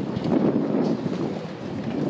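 A man talks casually outdoors.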